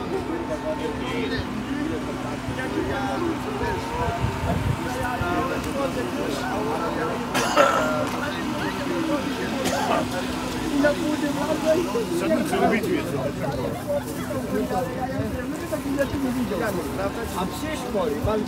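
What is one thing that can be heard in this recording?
A crowd of adults chatters all around outdoors.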